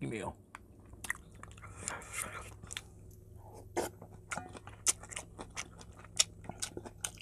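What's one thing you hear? A young man slurps soup noisily.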